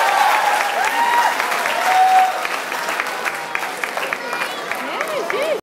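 An audience cheers and whoops loudly in a large hall.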